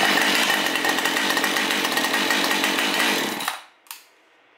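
A chainsaw engine runs loudly close by.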